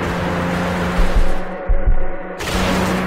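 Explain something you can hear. A car thuds heavily as it lands from a jump.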